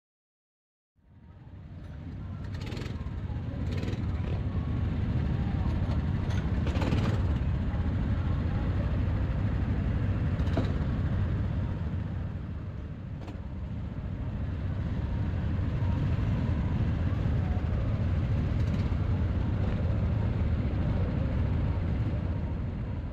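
Kart engines idle with a loud, steady rumble close by.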